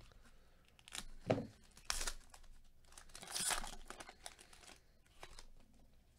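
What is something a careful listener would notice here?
A foil card pack wrapper crinkles as it is torn open.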